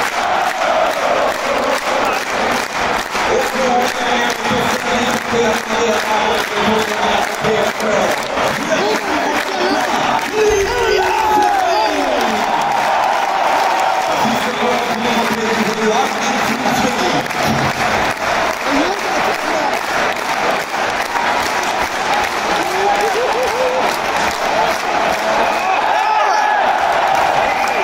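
A large crowd cheers, sings and chants loudly in an echoing arena.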